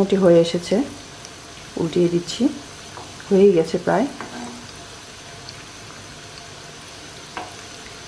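Hot oil sizzles and bubbles steadily around frying food.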